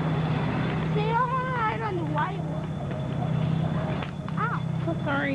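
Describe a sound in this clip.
A woman calls out in a high, lilting voice.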